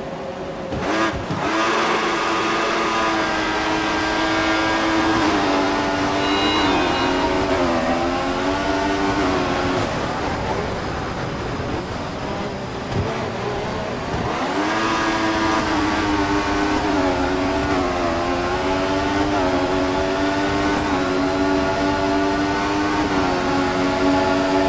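A racing car engine revs up high and shifts gears.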